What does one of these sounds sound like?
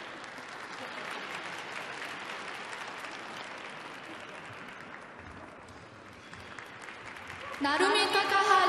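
A crowd applauds and cheers in a large echoing arena.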